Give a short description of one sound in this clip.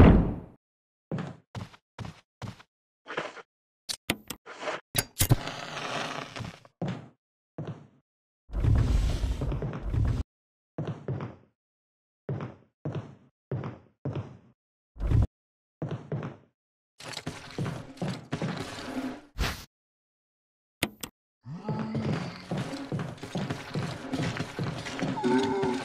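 Footsteps thud across a wooden floor.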